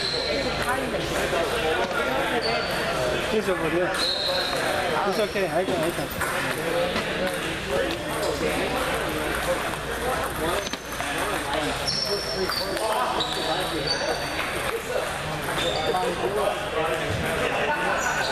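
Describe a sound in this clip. Table tennis balls click on paddles and tables, echoing in a large hall.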